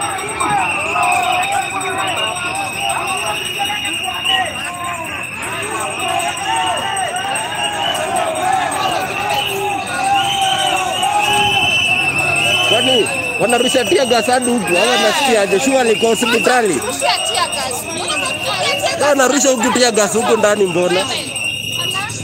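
A crowd chatters and shouts outdoors.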